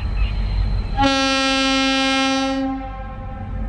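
A diesel locomotive's air horn sounds a long blast.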